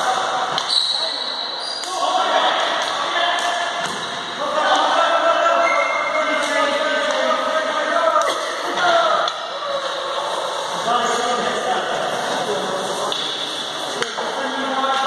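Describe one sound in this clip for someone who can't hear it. Sticks clack against a ball and the hard floor.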